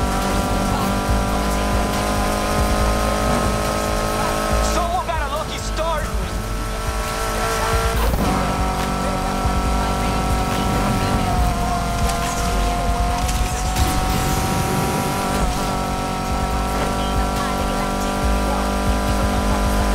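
A car engine roars steadily at high speed.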